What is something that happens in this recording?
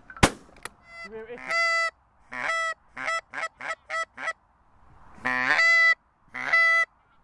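A flock of geese honks in flight.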